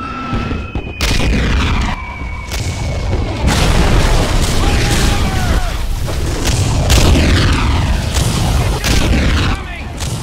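Explosions boom nearby, one after another.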